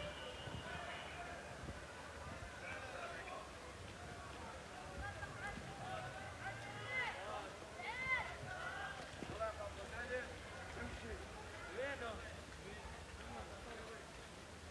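A crowd of men and women chatter and shout with excitement outdoors.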